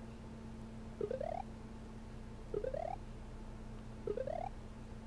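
Short rising electronic chirps from a video game sound three times.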